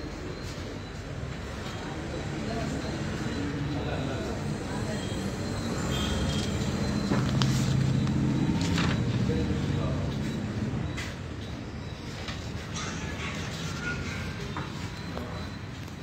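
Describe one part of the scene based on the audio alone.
Sheets of paper rustle and flap close by as they are handled.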